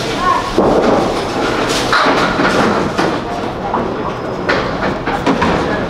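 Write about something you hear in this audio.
Bowling pins crash and clatter.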